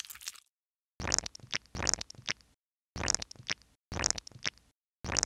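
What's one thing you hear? A brush squelches wetly as dye is spread through hair.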